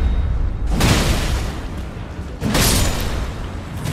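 A huge creature slams into the ground with a heavy crashing boom.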